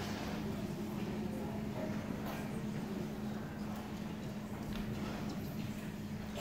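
An audience chatters quietly in a large echoing hall.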